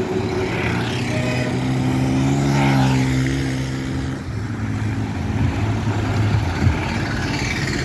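A bus engine drones loudly as it passes close by.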